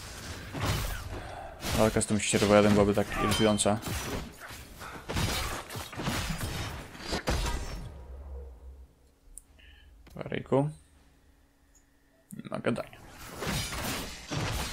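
Magic blasts and weapon blows crash and boom in a fight.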